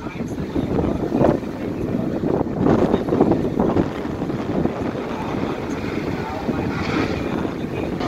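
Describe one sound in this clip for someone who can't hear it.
Tyres spin and squeal on the track in a burnout.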